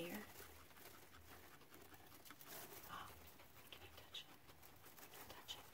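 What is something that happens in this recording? A guinea pig rustles through dry hay.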